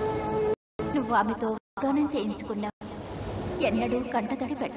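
A young woman sings with feeling.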